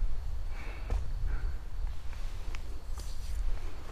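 A gloved hand grips a wooden pole with a soft knock.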